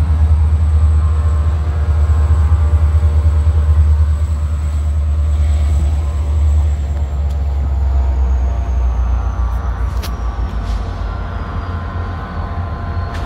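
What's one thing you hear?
A diesel locomotive engine rumbles loudly and steadily nearby.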